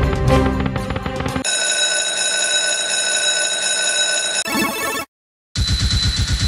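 A slot machine game plays bright electronic jingles and chimes.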